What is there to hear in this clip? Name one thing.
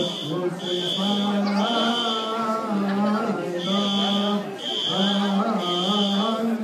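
A group of men chants in long, held tones.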